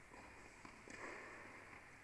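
A tennis ball is struck with a racket in a large echoing hall.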